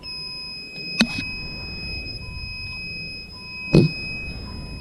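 A plastic cable plug clicks into a socket.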